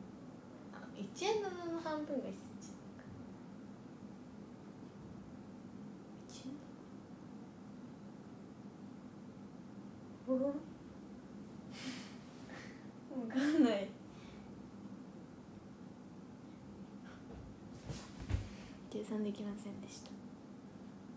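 A young woman speaks in short bursts close to a microphone, with pauses.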